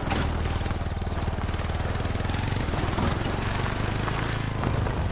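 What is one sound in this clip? An all-terrain vehicle engine putters steadily.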